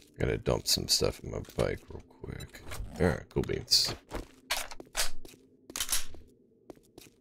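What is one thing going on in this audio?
Footsteps tap quickly on hard ground.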